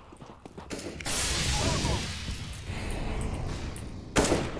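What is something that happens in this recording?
A smoke grenade hisses as it bursts.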